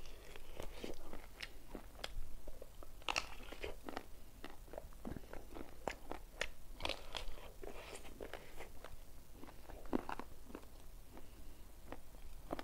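A young man chews food noisily and smacks his lips close to a microphone.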